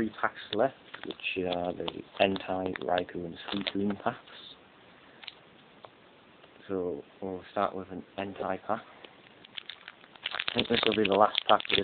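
Foil card packets crinkle and rustle as hands handle them.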